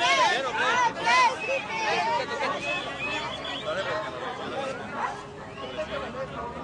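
A crowd chatters all around outdoors.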